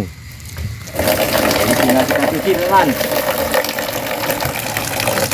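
Water pours from a tap into a plastic basin.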